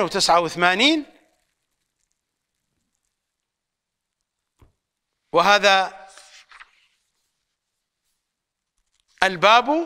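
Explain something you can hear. An elderly man recites in a melodic chanting voice, close to a microphone.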